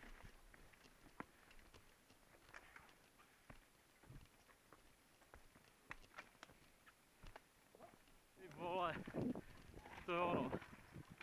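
Bike tyres crunch on a dirt trail.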